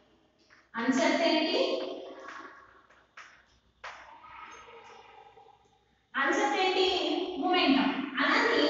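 A woman speaks clearly, explaining as she teaches, close by.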